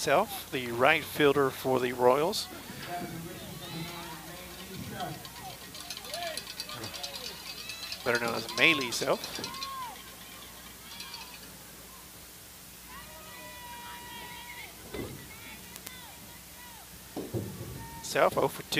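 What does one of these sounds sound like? Young women on a field shout and chant loudly outdoors.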